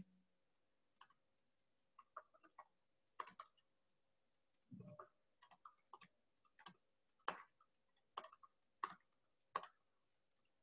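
Keys clack softly as someone types on a keyboard.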